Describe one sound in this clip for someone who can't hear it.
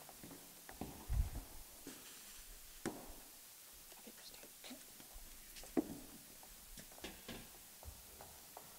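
Metal stands knock and clatter as they are moved.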